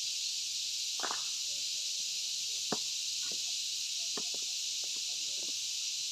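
A metal bar knocks against stone in sharp, scattered strikes.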